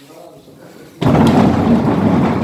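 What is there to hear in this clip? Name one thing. A machine starts and rumbles loudly.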